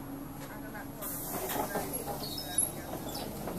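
Bus doors open with a pneumatic hiss.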